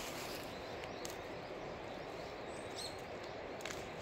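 A mushroom snaps off a log.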